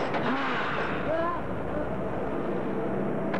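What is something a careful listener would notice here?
A man talks anxiously.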